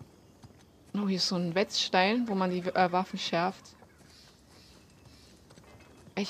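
Footsteps scuff softly on stone.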